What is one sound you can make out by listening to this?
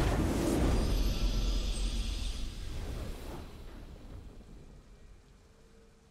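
A triumphant fanfare swells and then fades.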